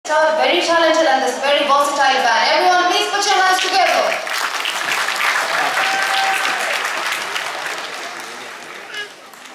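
A young woman speaks into a microphone over loudspeakers in a large hall.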